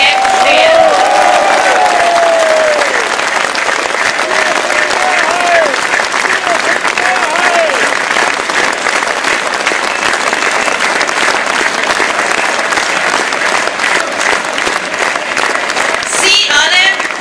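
A large outdoor crowd cheers loudly.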